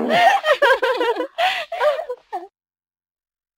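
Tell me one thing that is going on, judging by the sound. Two young women laugh and chatter close by.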